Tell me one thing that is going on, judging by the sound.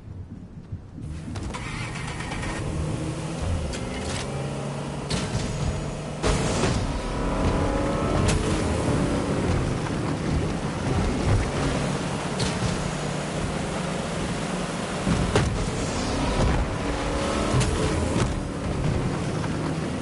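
A boat engine hums and roars steadily.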